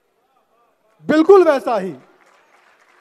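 A man speaks loudly and with feeling into a microphone, heard through loudspeakers.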